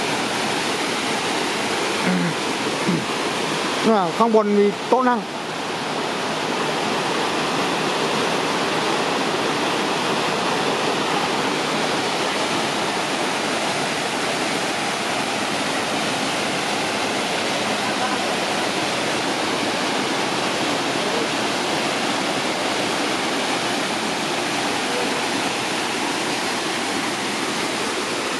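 A waterfall splashes steadily into a rocky pool.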